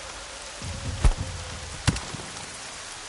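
Heavy blows land with sharp thuds.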